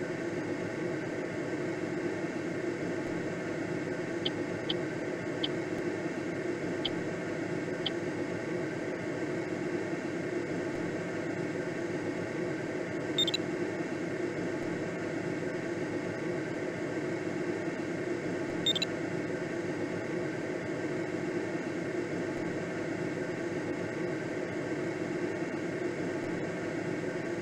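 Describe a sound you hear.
Wind rushes steadily past a gliding aircraft.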